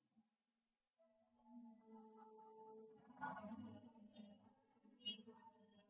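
Motorbikes ride past on a busy street.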